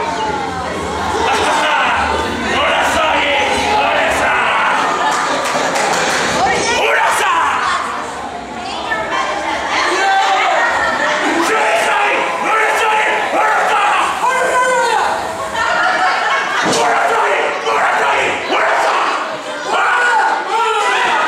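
A crowd of men and women shouts and cheers in a large echoing hall.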